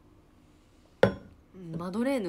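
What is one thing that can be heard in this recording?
A mug is set down on a hard surface with a knock.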